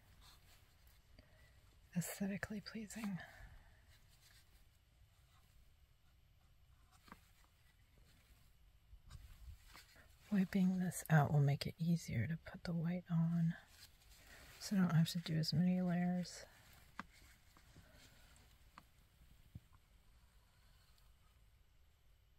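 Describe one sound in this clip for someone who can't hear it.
A cloth rubs softly against a canvas.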